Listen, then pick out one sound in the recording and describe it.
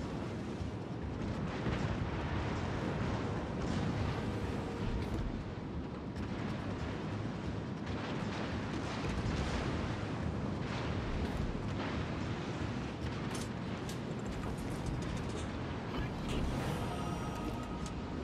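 Waves splash and rush against a ship's hull.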